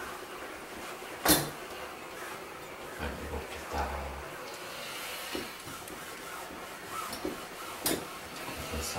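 A garment steamer hisses steadily.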